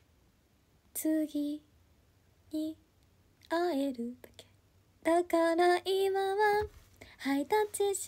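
A young woman speaks brightly and close to a microphone, in short bursts.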